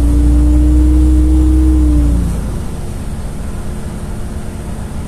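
Tyres rumble and hiss on a wet road.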